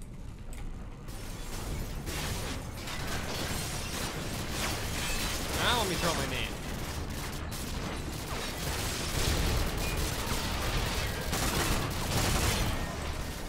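Gunfire crackles and booms in rapid bursts.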